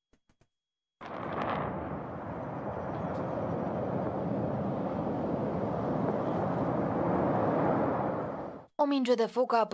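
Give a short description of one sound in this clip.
A large fire roars loudly outdoors.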